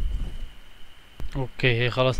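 A car engine rumbles low.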